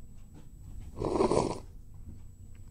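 Someone slurps noodles from a bowl.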